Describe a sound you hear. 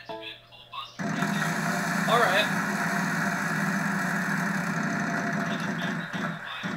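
Applause plays from a television.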